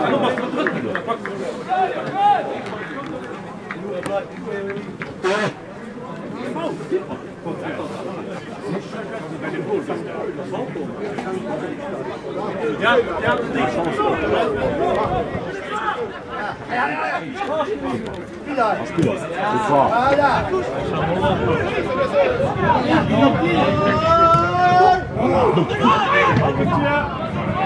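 A crowd of spectators murmurs and calls out at a distance.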